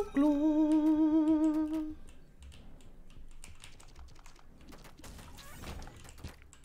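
Video game effects pop and thud in quick bursts.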